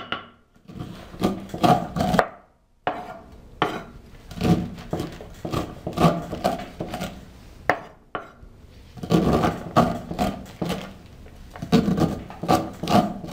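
A knife scrapes kernels off a corn cob onto a wooden board with quick rasping strokes.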